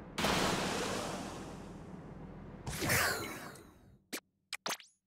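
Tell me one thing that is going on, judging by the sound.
A paint gun fires with a wet, splattering burst.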